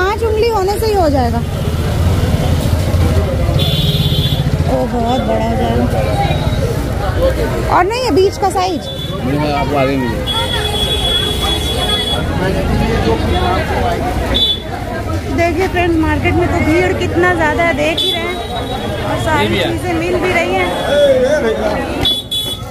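A busy crowd of men and women chatters all around.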